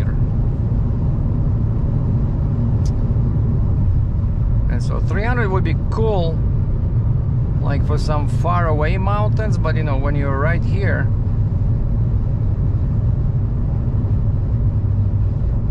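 A car engine and tyres hum steadily on a highway from inside the car.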